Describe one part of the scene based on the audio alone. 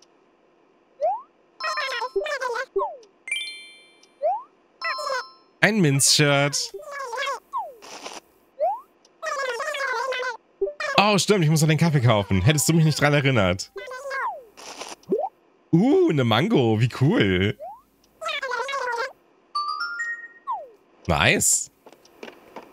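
A game character babbles in quick, squeaky chirps.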